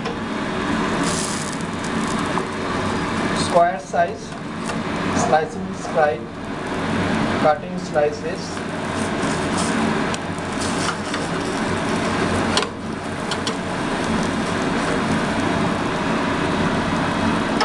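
A metal spatula scrapes against the pan.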